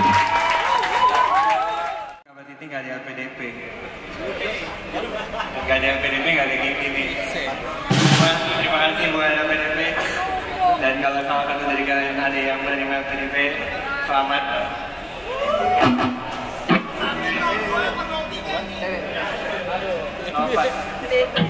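A rock band plays loudly on electric guitars and drums.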